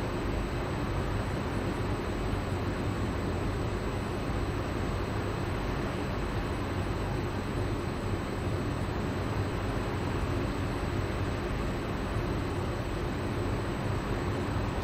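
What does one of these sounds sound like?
A stopped train hums steadily.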